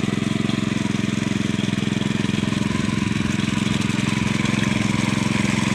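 A single-cylinder diesel power tiller chugs under load.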